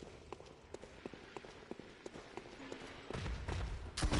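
Footsteps clatter on stone steps.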